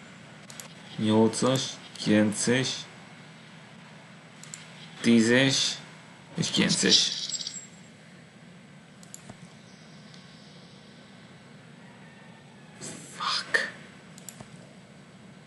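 A man talks calmly and briefly into a close microphone, with pauses.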